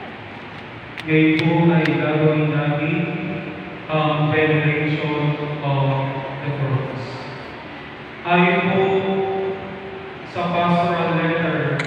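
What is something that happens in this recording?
A congregation sings together loudly in a large echoing hall.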